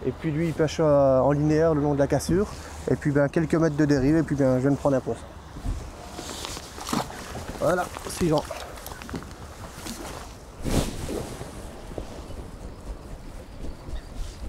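Water laps gently against a boat.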